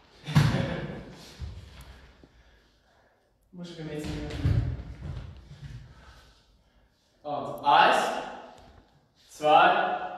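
A man talks firmly in a room with some echo.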